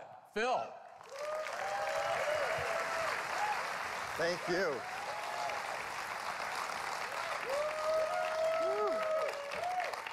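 A large crowd applauds and cheers loudly.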